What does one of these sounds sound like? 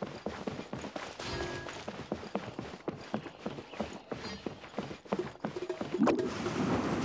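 Quick footsteps patter on wooden boards.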